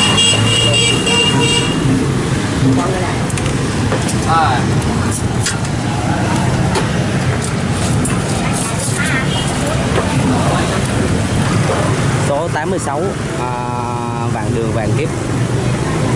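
Men and women chatter nearby on a busy street.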